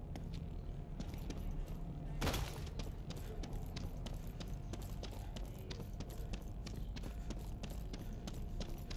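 Footsteps walk quickly along a paved path.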